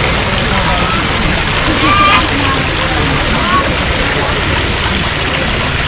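Water trickles and splashes steadily over a small step in a stream.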